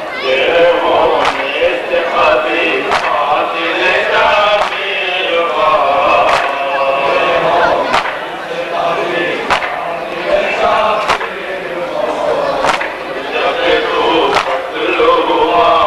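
A large crowd of men chants loudly together outdoors.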